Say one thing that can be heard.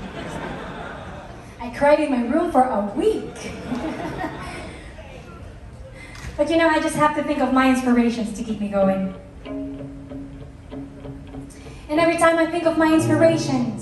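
A band plays softly behind a singer.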